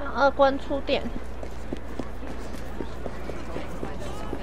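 Footsteps hurry over cobblestones.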